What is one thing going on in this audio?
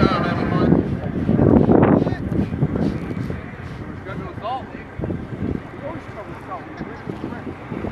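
A crowd of people talk and call out in the distance, outdoors in wind.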